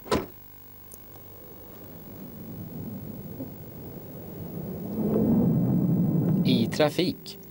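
A car engine revs and grows louder as the car approaches.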